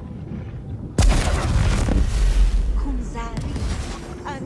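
A magical burst whooshes and rumbles loudly.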